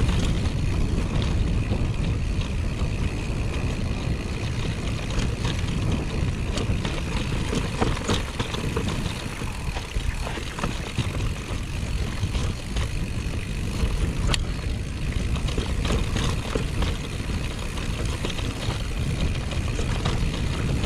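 Mountain bike tyres rumble over a trail.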